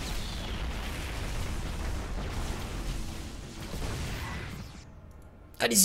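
Game gunfire and explosions rumble and crackle.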